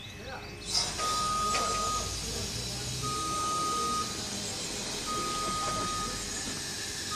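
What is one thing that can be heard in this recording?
A scissor lift's alarm beeps at a steady pace.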